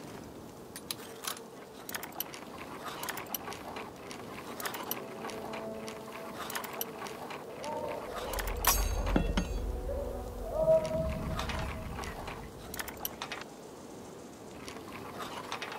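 A metal lockpick scrapes and clicks inside a lock.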